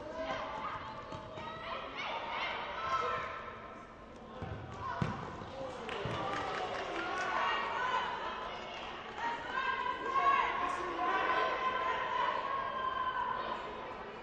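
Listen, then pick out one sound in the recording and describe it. Shoes squeak sharply on a hard court in an echoing hall.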